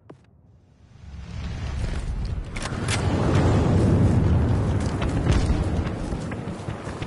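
Wind rushes loudly past during a fall.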